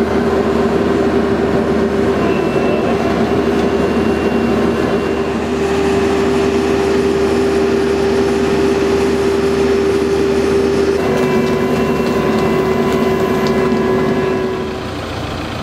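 A diesel engine rumbles steadily close by, then stops.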